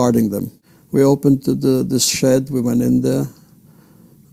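An elderly man speaks calmly through a loudspeaker.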